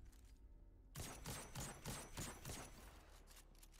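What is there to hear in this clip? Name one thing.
A rifle fires several quick shots in a row.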